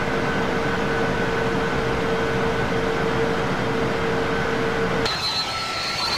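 Jet engines hum steadily, heard from inside a cockpit.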